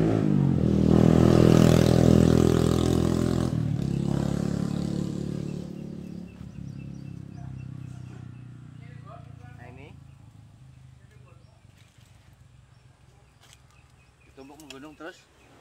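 Soil is tossed onto a heap with a soft thud.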